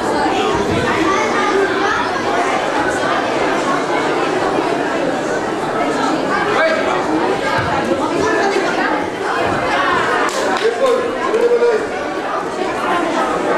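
A crowd of adults and children chatters in an echoing hall.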